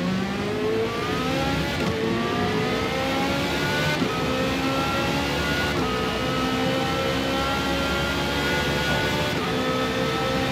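A racing car engine revs high, rising in pitch and dropping briefly at each gear change.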